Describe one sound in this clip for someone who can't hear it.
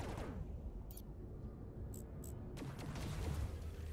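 Laser blasts zap in short bursts.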